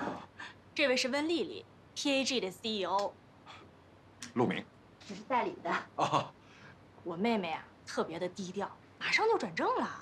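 A second woman speaks politely in reply.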